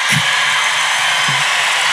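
An elderly woman speaks into a microphone.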